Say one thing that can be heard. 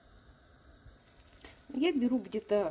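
Butter sizzles and bubbles in a hot pan.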